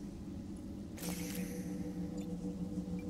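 A small hovering machine hums with a steady electric drone.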